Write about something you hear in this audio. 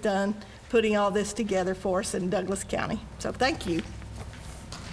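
An older woman speaks calmly through a microphone in a large room.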